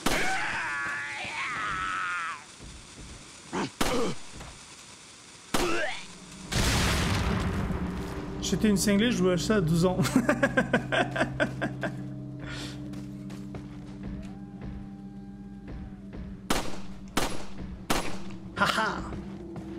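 Pistol shots ring out loudly, one at a time.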